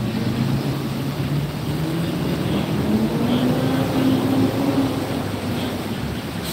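A box truck's engine rumbles as it drives past.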